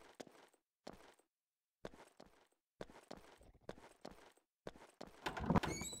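Footsteps thud steadily on dirt.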